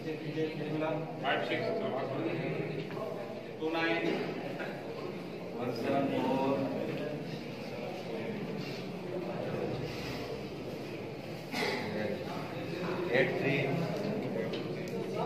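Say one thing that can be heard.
Several men talk at once in a large echoing hall.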